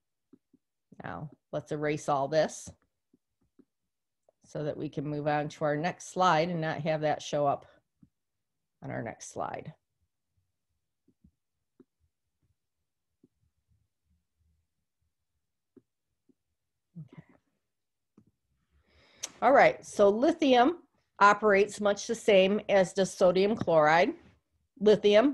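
A woman speaks calmly and clearly into a close microphone, with pauses.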